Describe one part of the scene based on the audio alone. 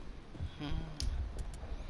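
Heavy footsteps thud on hard ground.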